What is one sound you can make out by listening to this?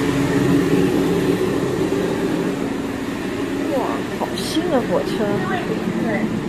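A train's interior hums steadily.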